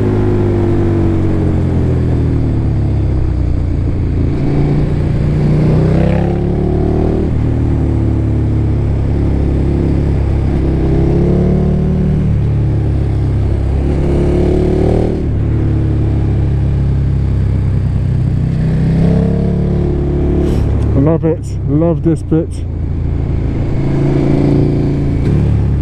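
A motorcycle engine roars close by, rising in pitch and dropping with each gear change.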